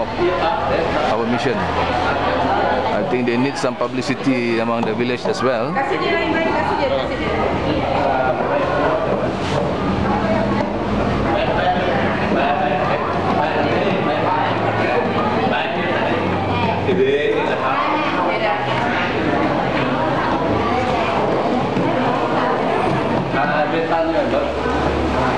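Plastic bags rustle as they are handed over.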